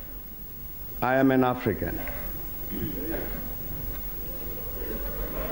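A man speaks steadily into a microphone in a large echoing hall.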